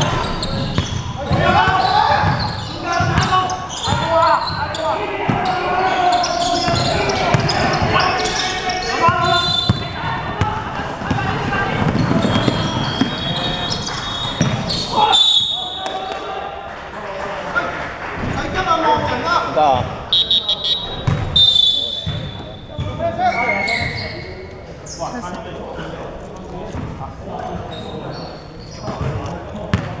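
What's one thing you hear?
Young men shout to each other during play.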